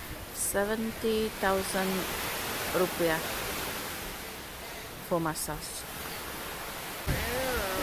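Gentle waves wash onto a shore.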